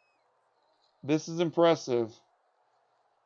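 A man speaks briefly into a microphone with animation.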